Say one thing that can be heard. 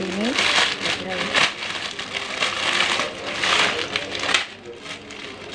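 A plastic bag crinkles and rustles in hands.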